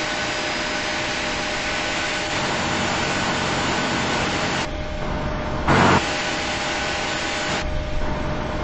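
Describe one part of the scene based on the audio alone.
A jet engine hums and whines steadily.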